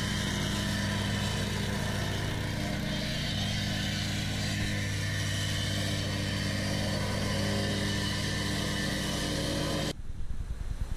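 A plate compactor engine runs with a loud, steady rumble.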